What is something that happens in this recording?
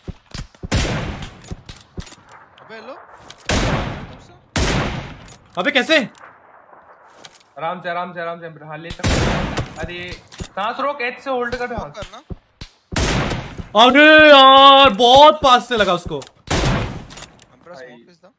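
A sniper rifle fires single shots that echo.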